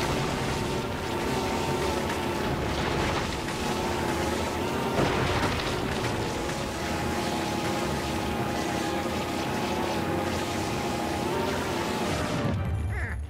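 A vacuum whooshes and roars as it sucks in a swirling gust.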